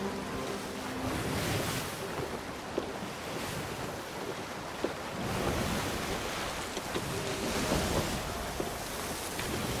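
A concertina plays a tune.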